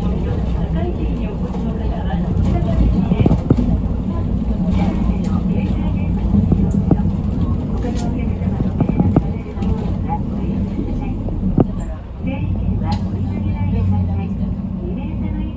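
A bus engine hums steadily from inside the bus.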